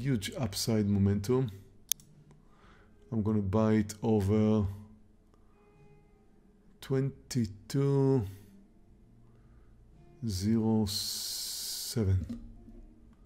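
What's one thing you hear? A middle-aged man talks into a close microphone with animation.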